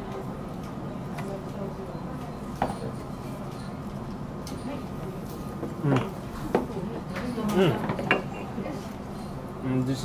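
Chopsticks click against plates and bowls.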